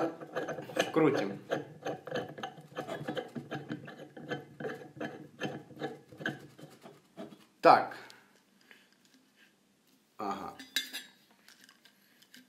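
Metal parts click and clatter as they are screwed together.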